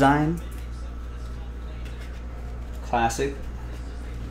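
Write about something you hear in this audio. A man speaks briefly, heard close through a microphone.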